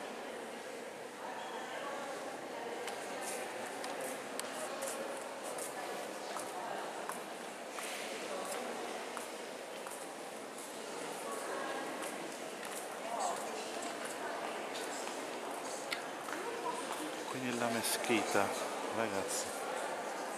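A crowd of visitors murmurs in a large echoing hall.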